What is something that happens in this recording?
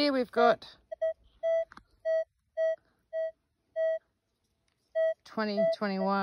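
A metal detector gives short, evenly spaced beeps.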